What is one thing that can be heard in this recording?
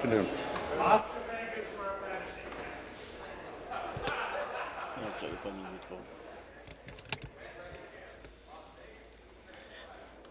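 Many people murmur quietly in a large hall.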